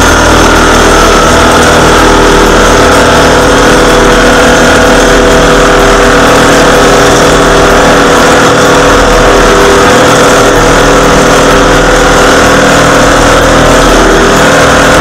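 A road roller's engine rumbles steadily close by.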